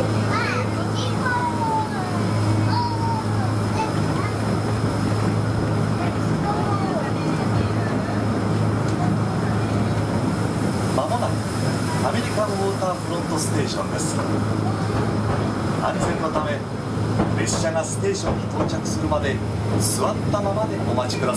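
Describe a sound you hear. A ride vehicle hums steadily as it glides along.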